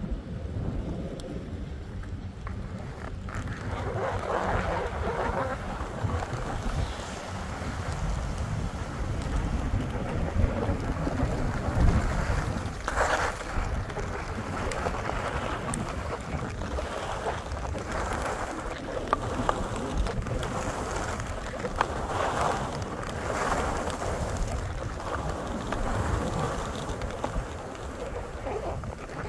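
Wind rumbles and buffets close by outdoors.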